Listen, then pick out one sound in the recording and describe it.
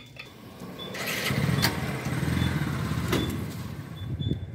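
Fuel gushes from a pump nozzle into a tank with a low rushing sound.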